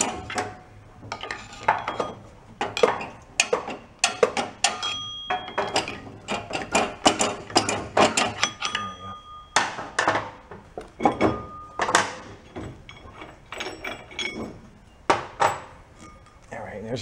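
Screwdrivers scrape and clink against a metal engine part.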